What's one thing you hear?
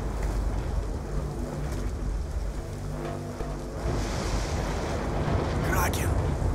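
Rain falls steadily on leaves outdoors.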